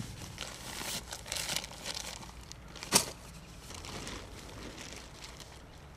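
Nylon fabric rustles as gear is packed.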